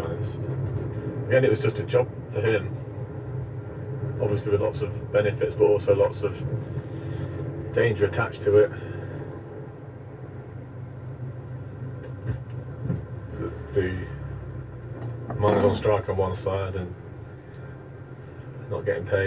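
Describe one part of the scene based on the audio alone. A car engine hums steadily in slow traffic.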